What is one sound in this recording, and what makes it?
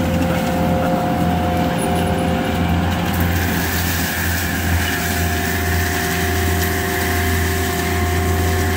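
A mulcher head whirs steadily at high speed.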